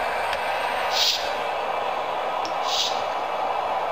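Short game menu clicks sound from a small phone speaker.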